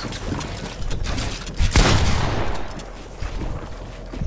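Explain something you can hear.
Wooden walls are built rapidly with sharp clacking thuds.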